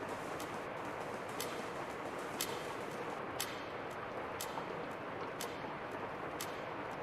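A clock ticks steadily, once a second.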